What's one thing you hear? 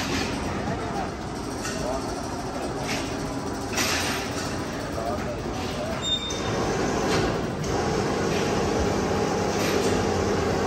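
Machinery rumbles steadily in a large echoing hall.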